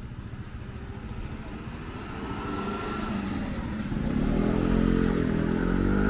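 A car drives past close by, its engine growing louder.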